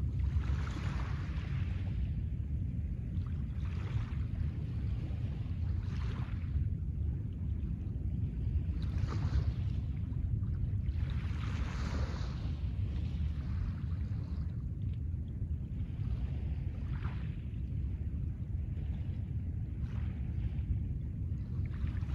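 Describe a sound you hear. Small waves lap and wash softly onto a pebble shore.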